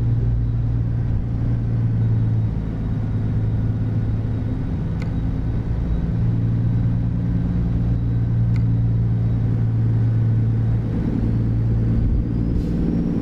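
A truck engine hums low and steady while driving.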